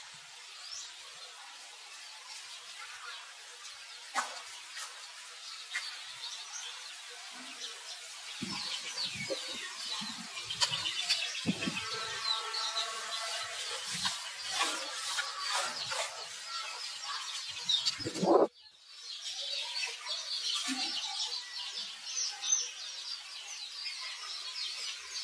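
A baby monkey squeaks and whimpers softly.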